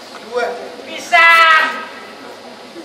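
A man shouts a long high cry.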